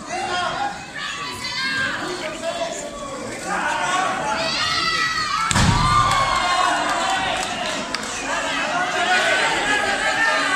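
A large crowd cheers and shouts in an echoing arena.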